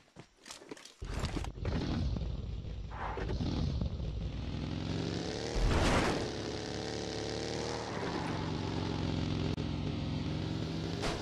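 A vehicle engine roars and revs.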